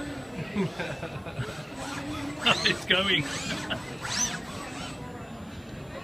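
A robot arm whirs as it swings.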